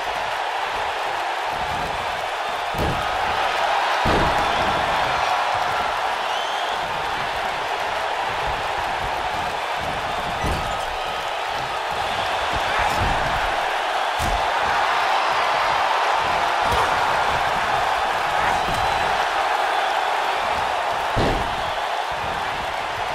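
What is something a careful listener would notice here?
A large crowd cheers steadily throughout.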